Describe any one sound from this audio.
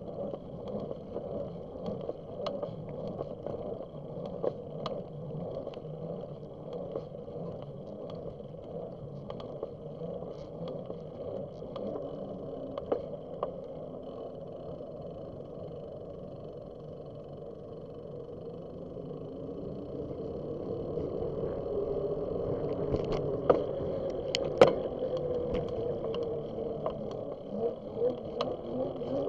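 Bicycle tyres roll steadily over a paved path.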